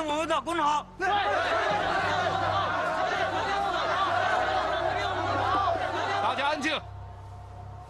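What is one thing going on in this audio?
A large crowd of men shouts and chants angrily.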